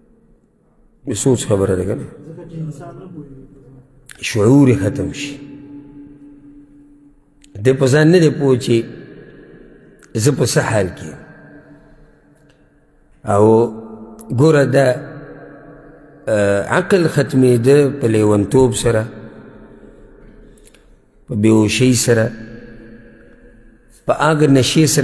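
A man speaks calmly into a microphone in an echoing room, with pauses between phrases.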